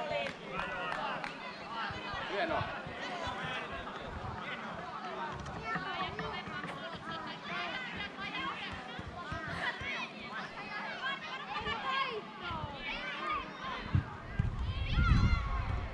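Young girls shout and call out to each other across an open outdoor field.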